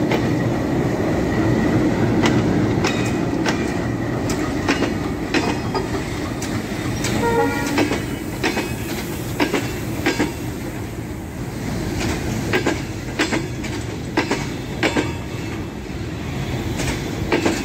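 Freight wagon wheels clack rhythmically over rail joints.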